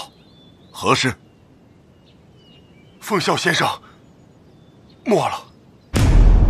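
A man speaks in a deep, stern voice.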